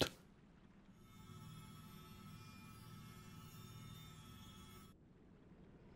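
A glowing orb hums with a shimmering tone.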